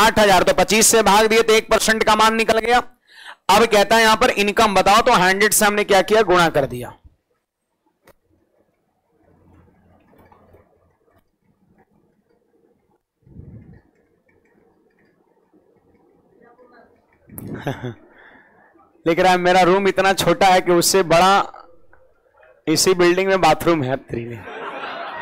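A man lectures with animation through a microphone.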